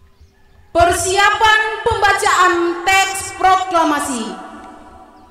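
A man shouts a drawn-out command through a loudspeaker outdoors, echoing.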